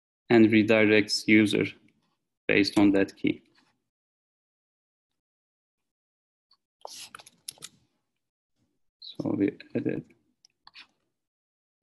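A young man speaks calmly in short bursts through an online call microphone.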